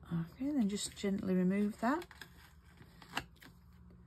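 Paper rustles as a sheet is lifted.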